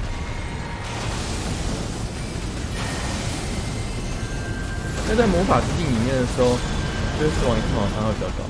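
Loud magic blasts crackle and roar.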